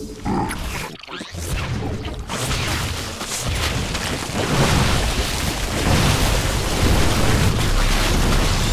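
Video game battle effects crackle with gunfire and explosions.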